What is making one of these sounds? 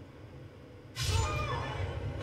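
A heavy thud sounds as a rider hits the ground after a fall.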